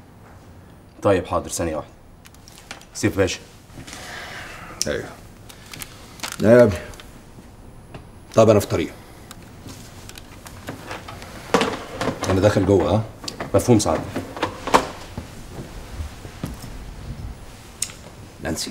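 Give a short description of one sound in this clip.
A middle-aged man speaks tensely in short bursts, close by.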